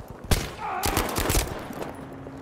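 Gunshots crack loudly in quick succession.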